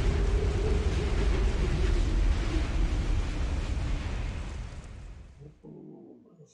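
A fierce storm wind roars with tumbling debris, then fades away.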